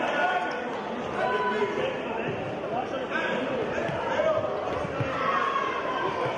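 Sneakers squeak on an indoor court floor.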